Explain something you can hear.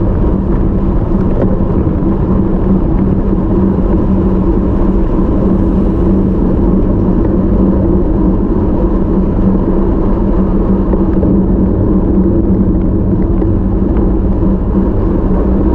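Wind rushes loudly over a moving bicycle.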